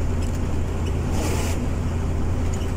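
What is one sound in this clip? A truck passes by with a brief whoosh.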